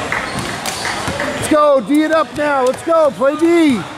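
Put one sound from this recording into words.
A basketball is dribbled on a gym floor.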